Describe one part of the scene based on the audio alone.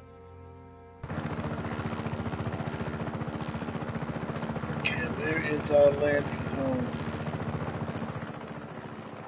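A helicopter's rotor thumps loudly and steadily overhead.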